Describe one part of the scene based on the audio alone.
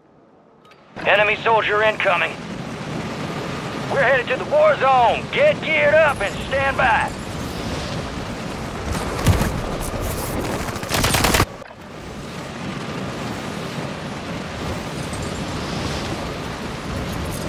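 Wind rushes loudly past a falling person.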